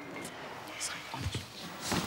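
A middle-aged woman speaks quietly nearby.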